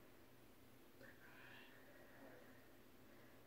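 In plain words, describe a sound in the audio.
A woman sniffles softly close by.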